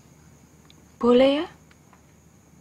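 A woman pleads in a strained, close voice.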